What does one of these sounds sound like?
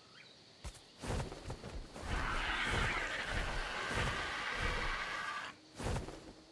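Large wings flap with heavy, rushing whooshes.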